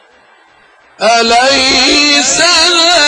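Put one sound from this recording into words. A man chants loudly in a wavering voice through a loudspeaker.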